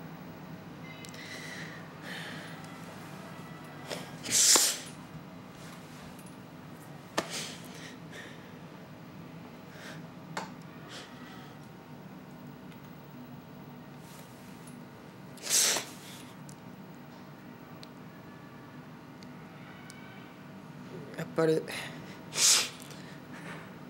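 A young man breathes heavily and sighs close by.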